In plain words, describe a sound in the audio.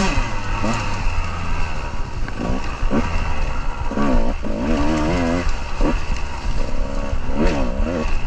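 Dry leaves crunch and rustle under tyres.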